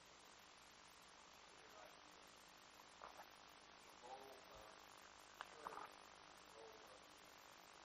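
A plastic water bottle crinkles in a man's hand.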